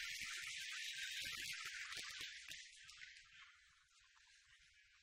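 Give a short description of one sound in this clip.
An audience applauds in a large room, then the applause fades.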